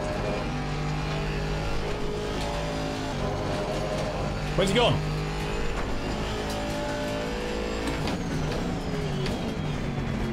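A race car engine roars steadily, its pitch rising and dropping with gear changes.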